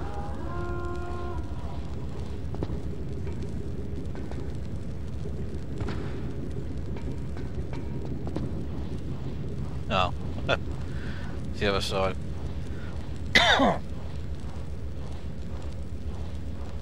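Footsteps clang on a metal floor.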